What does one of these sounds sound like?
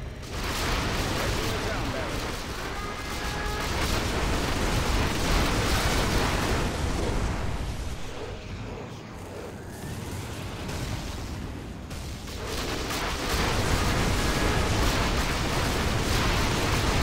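Explosions boom and rumble repeatedly.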